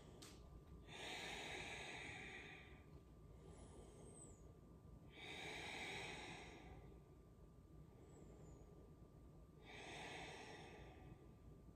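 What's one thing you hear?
A woman breathes out slowly and deeply.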